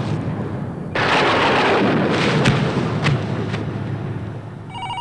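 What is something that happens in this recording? Thunder cracks and rumbles loudly.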